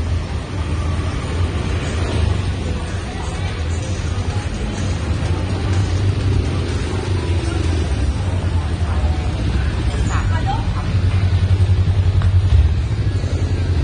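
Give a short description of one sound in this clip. A motorbike engine putters past close by.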